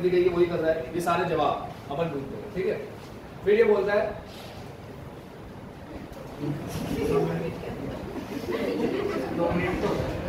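A young man lectures calmly and clearly into a close microphone.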